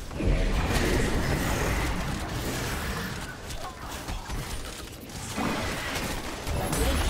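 Video game fighting sounds of clashing blows and magic bursts play steadily.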